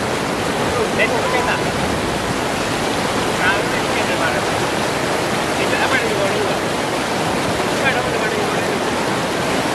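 Fast water rushes and churns loudly over rocks.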